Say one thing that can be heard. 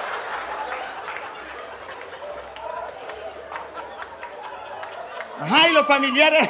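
An audience laughs and applauds.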